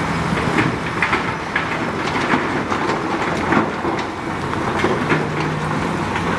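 A bulldozer engine rumbles steadily.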